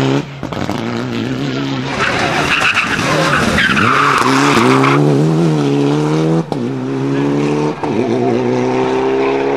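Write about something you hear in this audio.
A rally car engine roars loudly as the car speeds past and revs through its gears.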